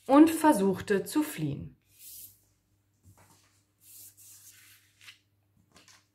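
Paper cutouts rustle and slide across a surface.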